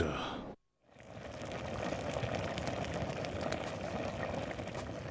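A fire crackles under a simmering pot.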